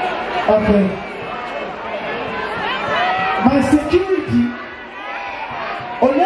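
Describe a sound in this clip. A crowd cheers and screams.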